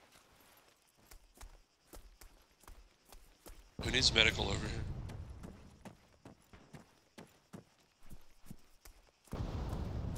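Footsteps crunch through dry grass and dirt.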